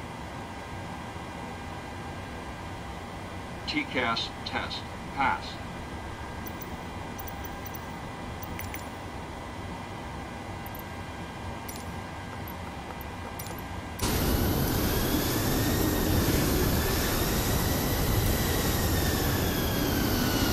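A jet airliner's engines and systems hum steadily.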